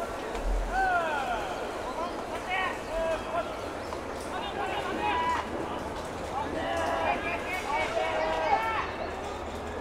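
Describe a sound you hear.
A crowd cheers and chants in an open-air stadium.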